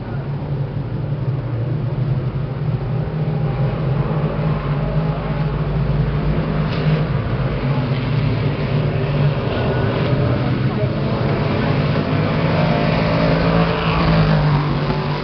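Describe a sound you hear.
Race car engines roar loudly around a dirt track.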